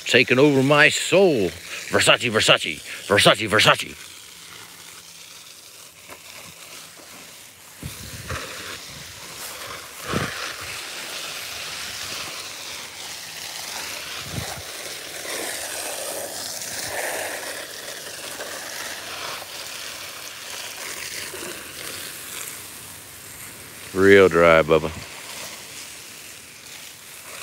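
Water from a hose sprays and splashes onto leaves and soil.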